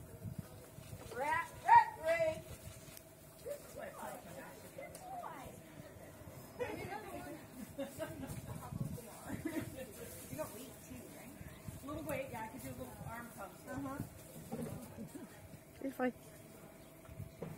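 Children shout and chatter playfully outdoors.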